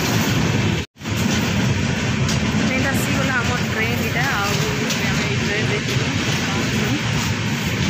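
A middle-aged woman talks close to the microphone.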